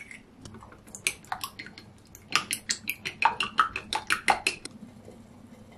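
Chopsticks click against a glass bowl, beating eggs.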